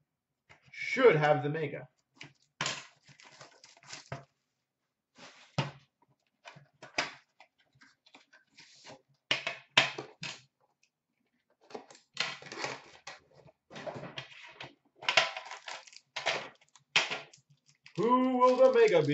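Small cardboard boxes rustle and knock together as they are handled.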